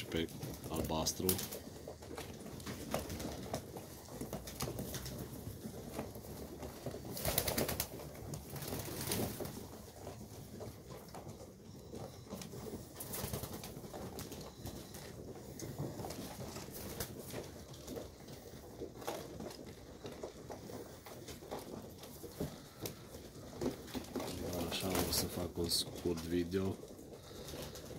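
Pigeons coo softly and steadily close by.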